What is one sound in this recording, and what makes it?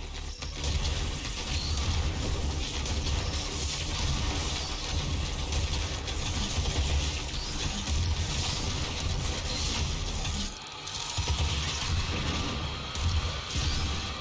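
Heavy gunfire booms in rapid bursts.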